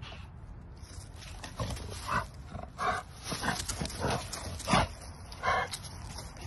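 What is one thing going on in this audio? Dogs' paws rustle and crunch through dry fallen leaves.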